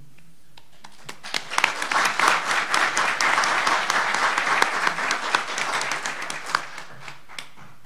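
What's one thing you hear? An audience applauds warmly, then the clapping fades.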